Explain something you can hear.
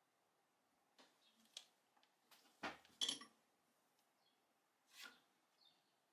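A tool clicks and taps against a table.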